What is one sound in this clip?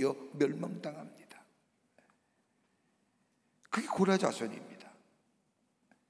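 A middle-aged man speaks calmly through a microphone in an echoing hall.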